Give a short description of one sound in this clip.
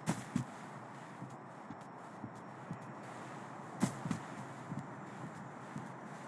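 Footsteps scuff on grass outdoors.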